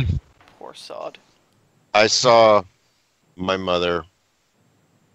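A young man speaks in short phrases over an online call.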